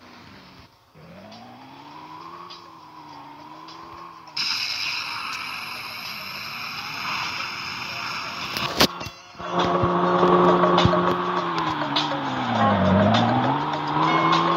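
A car engine revs and hums, rising and falling in pitch.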